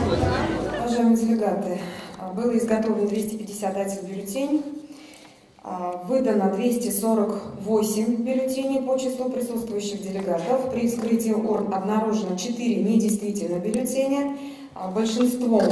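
A middle-aged woman reads out calmly through a microphone.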